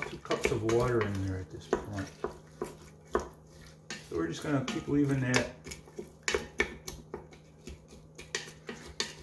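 A wooden spoon stirs and scrapes chopped vegetables in a metal pot.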